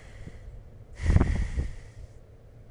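A man shouts, close to a microphone.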